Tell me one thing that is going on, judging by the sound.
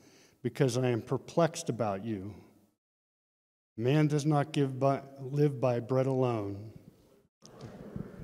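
A middle-aged man speaks calmly into a microphone, reading out.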